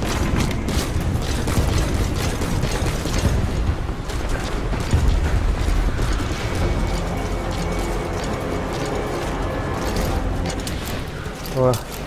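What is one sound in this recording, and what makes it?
Strong wind roars and gusts steadily.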